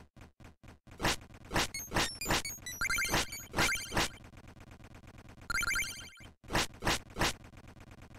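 Sharp electronic clinks and chimes ring out.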